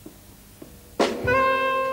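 A trumpet plays loudly.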